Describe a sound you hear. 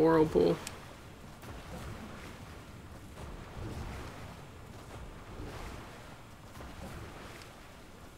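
Water splashes softly as a game character swims.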